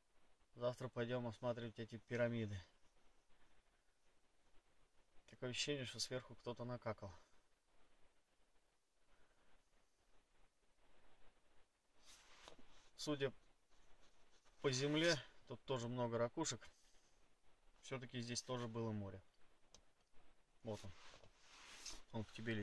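A young man speaks quietly and close by, in short bursts with pauses.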